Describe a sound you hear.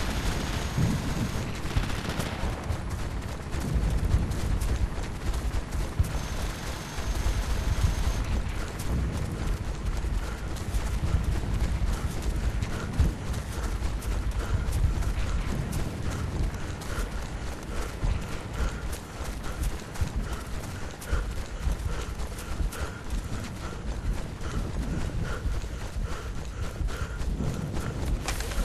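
Grass rustles and swishes as someone crawls through it.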